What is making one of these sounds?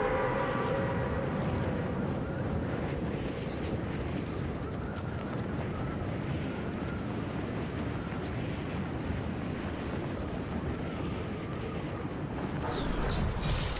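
Wind rushes loudly and steadily past a falling skydiver.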